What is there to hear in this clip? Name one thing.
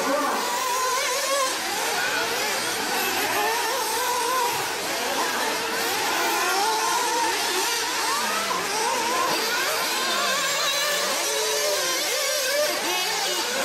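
Tyres of model cars crunch over a dirt track.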